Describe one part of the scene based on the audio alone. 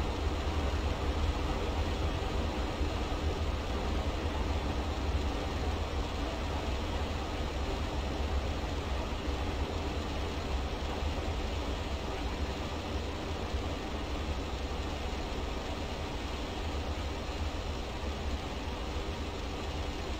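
A train rumbles steadily across a viaduct in the distance.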